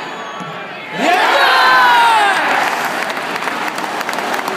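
A football crowd roars and cheers after a penalty kick.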